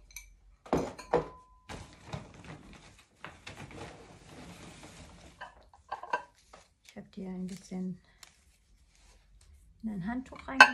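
Soft fabric rustles as a sweater is handled.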